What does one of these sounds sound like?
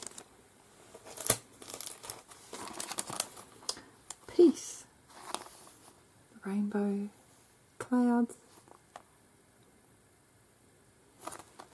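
A plastic sheet crinkles and rustles in someone's hands.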